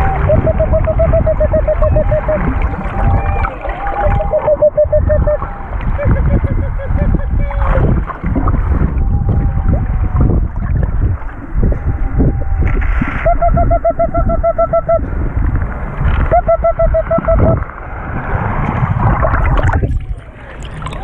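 Water rumbles and rushes around underwater.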